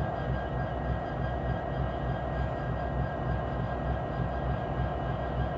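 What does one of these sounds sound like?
A freight train's wheels roll and clatter over the rails.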